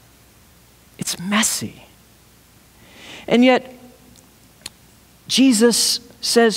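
A man speaks with animation through a microphone in a room with a slight echo.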